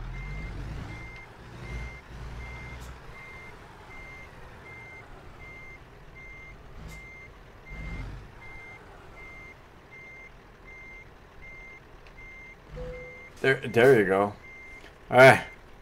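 A reversing alarm beeps steadily.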